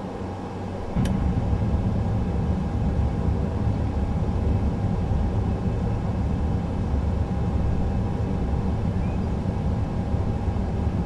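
Tyres touch down with a thud and rumble along a runway.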